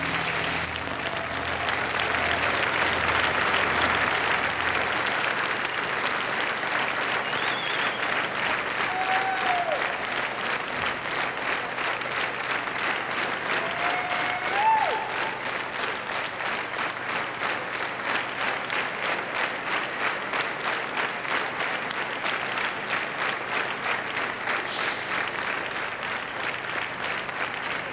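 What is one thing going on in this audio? A large crowd cheers loudly in a big echoing hall.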